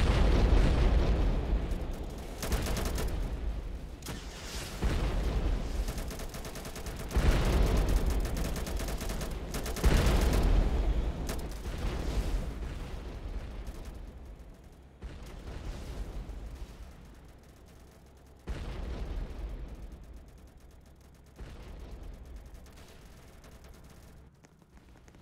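Loud explosions boom one after another, each fading slowly.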